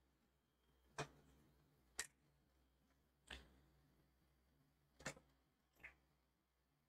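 A plastic ruler taps and knocks softly on paper.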